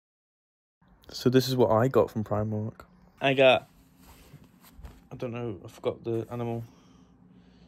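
A young man talks with animation close to a phone microphone.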